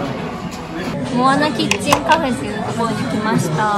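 A young woman talks close by in a lively, chatty way.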